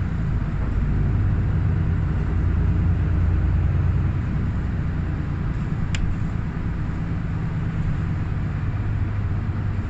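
A train rumbles steadily as it rolls along.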